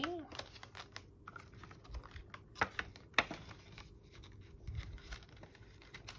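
Plastic binder pages flap as they are turned.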